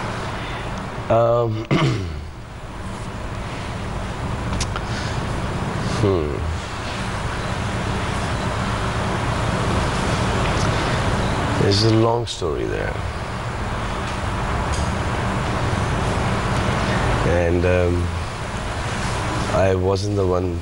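A man speaks.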